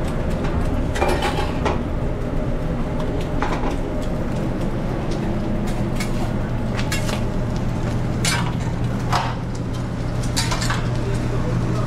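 Metal utensils clink and scrape against pans.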